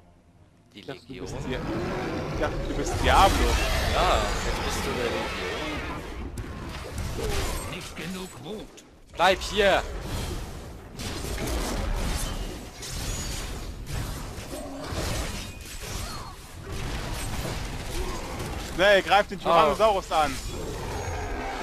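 Magic blasts and blows clash loudly in a fierce battle.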